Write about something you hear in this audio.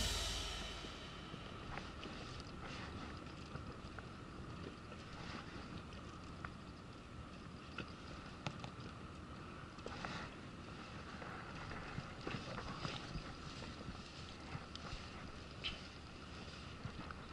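A fishing reel clicks softly.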